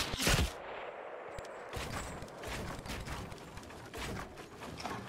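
Wooden planks clatter and knock rapidly.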